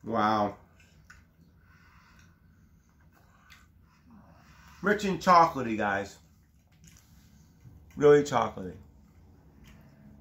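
A man chews food with his mouth full.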